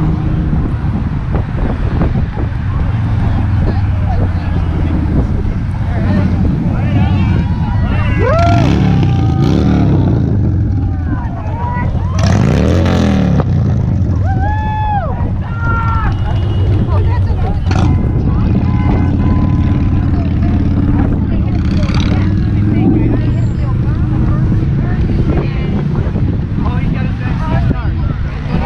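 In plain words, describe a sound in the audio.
Traffic rushes steadily past on a busy road.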